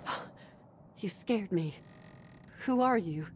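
A woman speaks in a startled, questioning voice.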